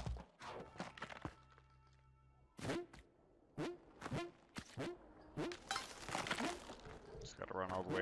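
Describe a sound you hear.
Quick game sound effects whoosh and pop again and again.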